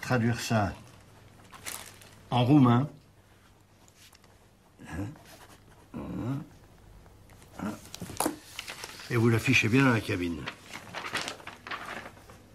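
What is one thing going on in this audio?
An elderly man speaks firmly and close by.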